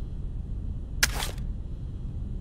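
Two pistols clatter as they are picked up.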